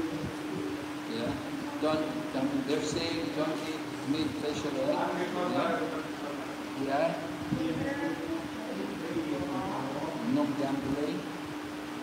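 An elderly man speaks softly, close by.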